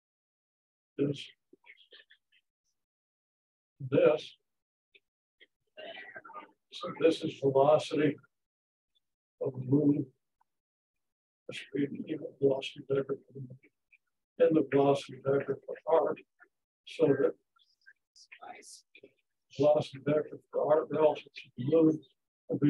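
An elderly man speaks slowly in short phrases with pauses, as if lecturing.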